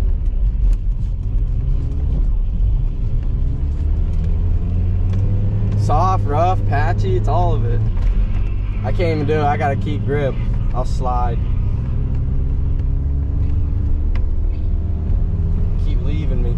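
A car engine hums steadily at low pitch from inside the car.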